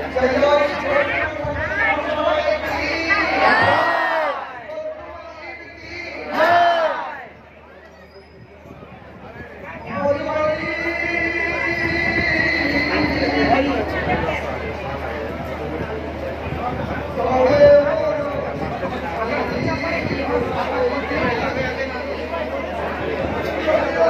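A man sings loudly through a microphone and loudspeakers.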